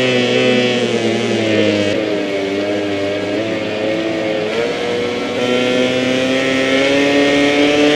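A motorcycle engine revs loudly at high speed, its pitch rising and falling.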